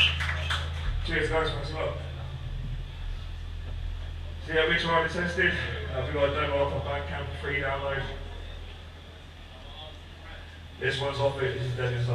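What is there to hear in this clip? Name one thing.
A man shouts into a microphone over the band.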